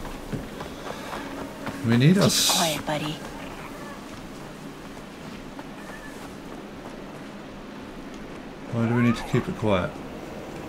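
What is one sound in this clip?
Footsteps tread through grass and over rock.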